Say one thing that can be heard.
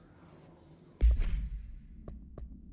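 A game menu opens with a deep whoosh.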